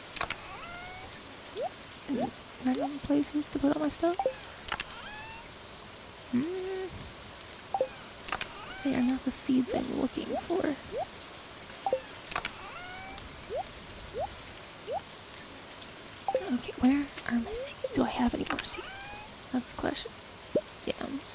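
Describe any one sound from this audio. Short soft clicks and pops of a game menu sound now and then.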